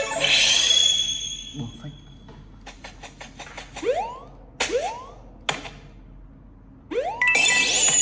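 Game sound effects play through a small phone speaker, with rising jump tones and chimes.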